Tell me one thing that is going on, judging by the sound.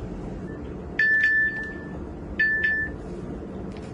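A phone rings briefly.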